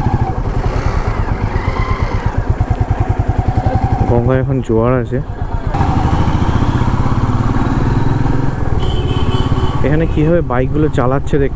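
A motorcycle engine thumps steadily up close as the bike rides along.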